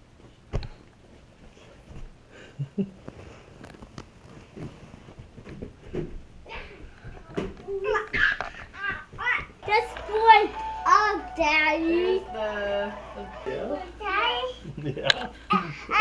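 A young child chatters and squeals close by.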